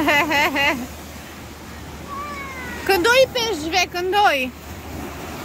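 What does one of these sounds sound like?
A young girl speaks up brightly nearby.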